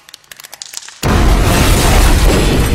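A loud explosion roars.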